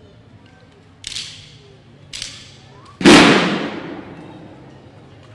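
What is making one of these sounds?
A marching band's drums and cymbals strike a few sharp, ringing hits outdoors.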